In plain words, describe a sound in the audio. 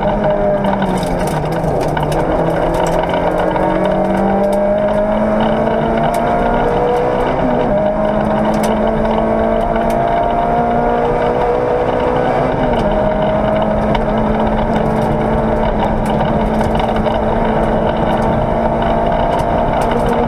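A car engine roars loudly close by, its pitch climbing and dropping as gears change.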